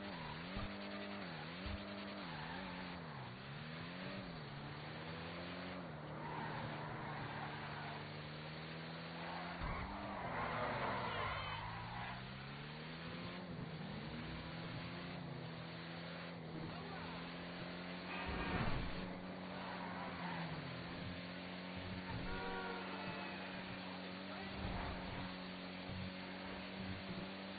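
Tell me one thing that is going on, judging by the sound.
A car engine revs up and down, then hums steadily.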